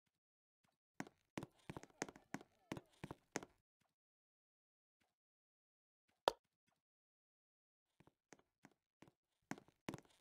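Game menu buttons give short clicks as they are tapped.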